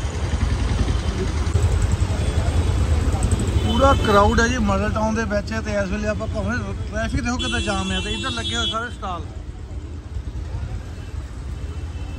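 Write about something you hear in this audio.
Traffic engines rumble steadily on a busy street.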